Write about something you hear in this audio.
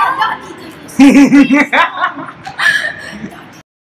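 Young women laugh together.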